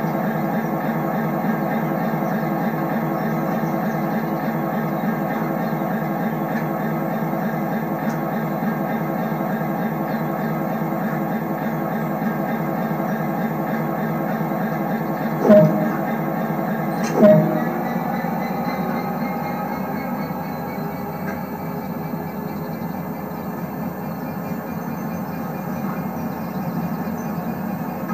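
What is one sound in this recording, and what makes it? A train engine idles with a steady low hum.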